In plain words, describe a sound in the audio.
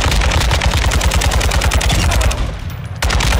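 A rifle fires in a rapid automatic burst.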